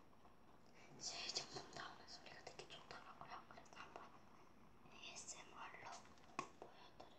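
A young girl talks softly and calmly, close by.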